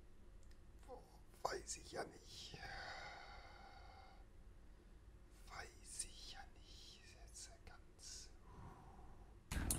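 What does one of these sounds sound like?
A man groans in disgust.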